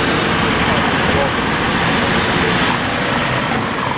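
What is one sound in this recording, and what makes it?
A truck cab door slams shut.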